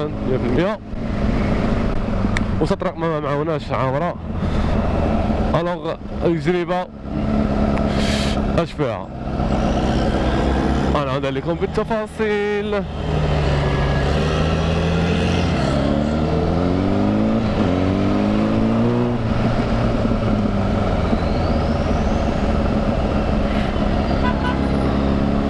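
Wind rushes past loudly as the motorcycle rides.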